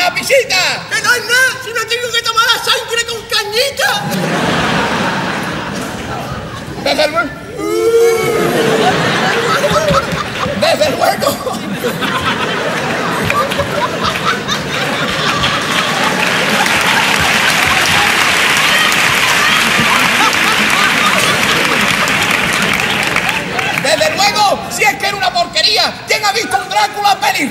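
A man speaks loudly and theatrically on a stage microphone.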